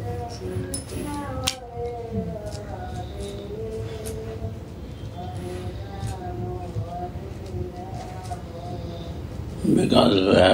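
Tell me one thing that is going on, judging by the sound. An elderly man chants slowly in a steady, drawn-out voice.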